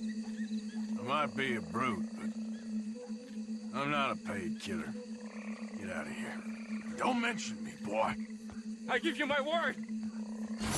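A man speaks gruffly and threateningly up close.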